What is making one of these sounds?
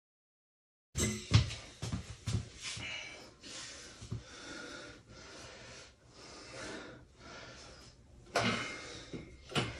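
A loaded barbell clanks against a metal rack.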